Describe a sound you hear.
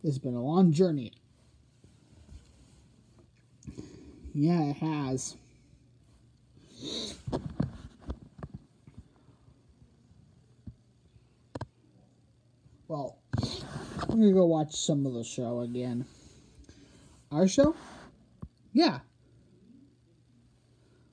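Soft plush toys rustle and shuffle against a fabric blanket.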